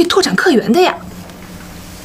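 A young woman speaks with surprise, close by.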